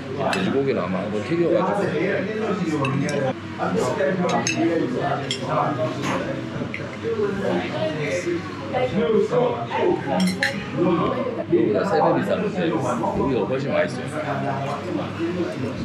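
Metal cutlery clinks against a dish.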